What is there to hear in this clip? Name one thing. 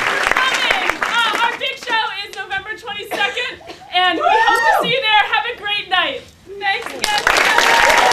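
A young woman laughs and shouts with delight.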